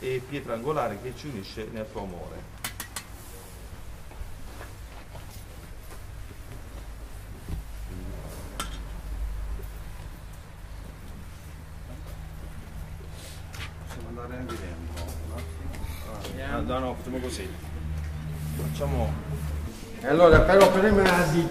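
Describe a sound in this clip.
An elderly man speaks calmly outdoors.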